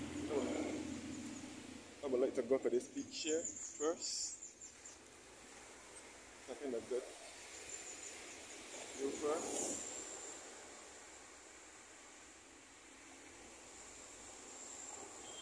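Wind rustles palm leaves.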